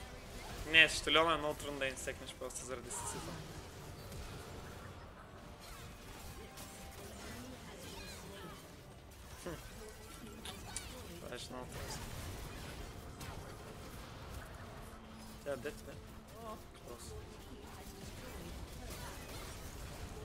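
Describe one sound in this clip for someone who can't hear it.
Fantasy battle sound effects of a video game whoosh and clash.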